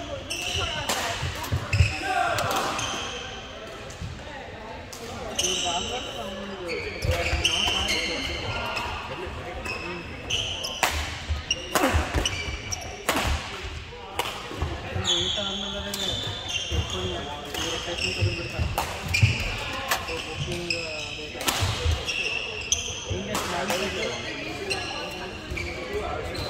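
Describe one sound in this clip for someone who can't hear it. Rackets hit shuttlecocks with sharp pops in a large echoing hall.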